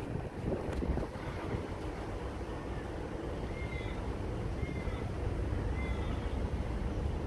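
A diesel freight locomotive rumbles steadily as it approaches.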